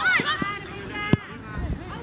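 A boot kicks a football with a thud.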